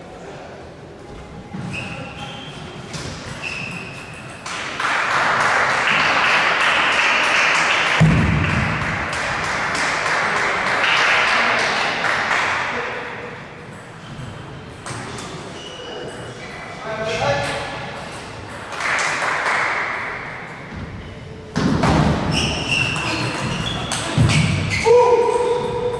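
A young man talks calmly nearby in a large echoing hall.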